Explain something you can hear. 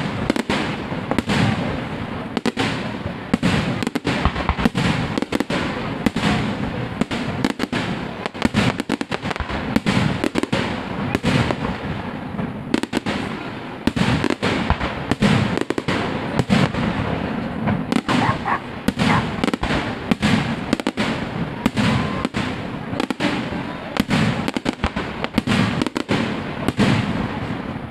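Fireworks crackle and bang rapidly outdoors.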